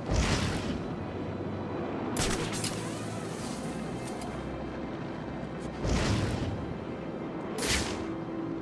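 A cape flaps and whooshes in sudden bursts.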